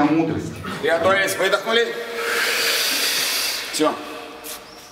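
A man speaks in a large echoing hall.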